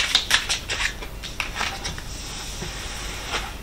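Cards are laid down softly on a cloth-covered table.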